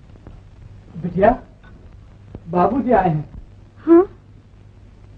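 A young woman speaks in a startled voice.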